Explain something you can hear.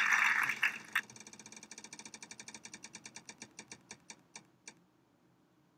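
A prize wheel spins with rapid clicking that slows down and stops.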